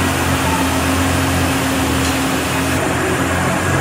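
An ice resurfacing machine's engine hums steadily in a large echoing hall.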